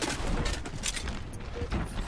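A grenade launcher fires with a hollow thump.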